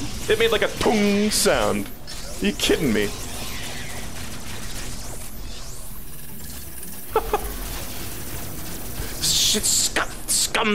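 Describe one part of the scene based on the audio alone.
A character fires a beam weapon in short bursts.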